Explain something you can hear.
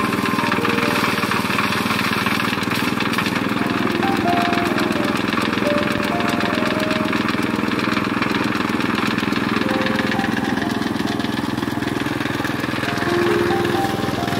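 A threshing machine whirs and rattles steadily.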